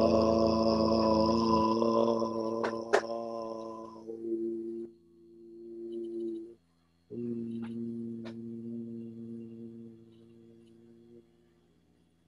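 An elderly man sings, holding long, steady notes.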